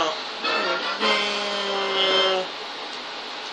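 A short musical jingle plays through a television loudspeaker.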